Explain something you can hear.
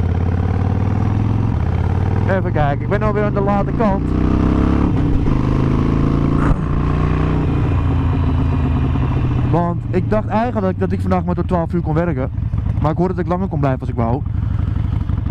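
A motorcycle engine rumbles steadily as the bike rides along.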